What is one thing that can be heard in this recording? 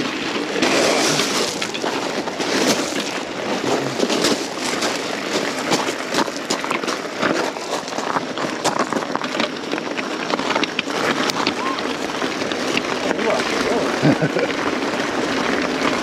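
Bicycle tyres crunch steadily over loose gravel.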